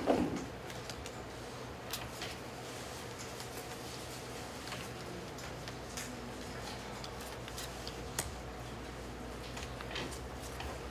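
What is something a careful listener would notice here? Playing cards are shuffled and flicked in hands with soft clicks.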